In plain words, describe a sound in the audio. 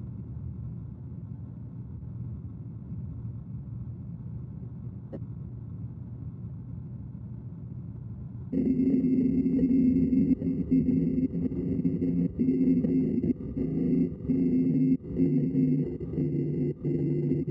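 A wood lathe hums as it spins.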